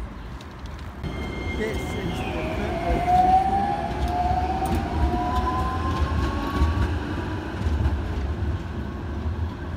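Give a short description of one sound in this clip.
A tram rumbles past nearby.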